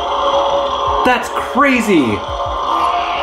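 A toy lightsaber makes swooshing, sliding sounds as it swings.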